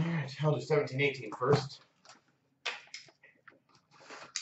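Cardboard boxes and card packs rustle and tap as they are handled.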